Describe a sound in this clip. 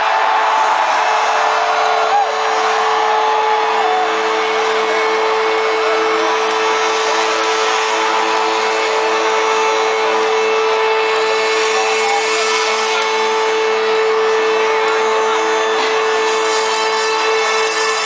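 Live music plays loudly through big loudspeakers in a huge echoing arena.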